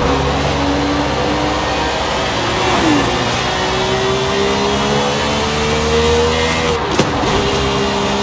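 A race car engine roars and rises in pitch as it speeds up through the gears.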